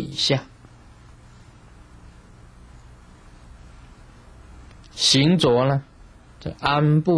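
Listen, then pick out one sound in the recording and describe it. A middle-aged man speaks calmly into a microphone, with long pauses.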